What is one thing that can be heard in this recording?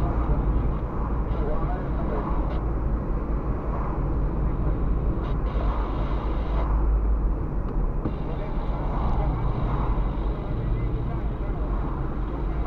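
Tyres roll on asphalt with a steady road noise.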